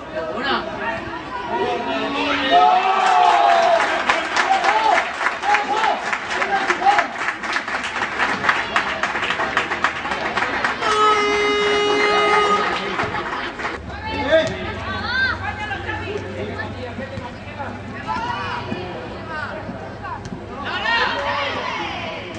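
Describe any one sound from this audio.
Young men shout and cheer excitedly on an open field.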